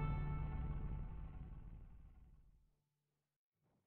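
A deep, booming victory fanfare rings out and slowly fades away.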